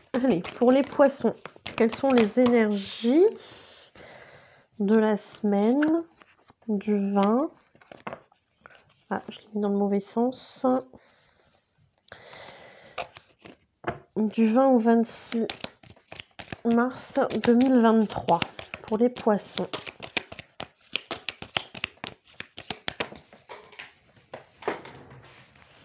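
Playing cards riffle and slap as they are shuffled by hand.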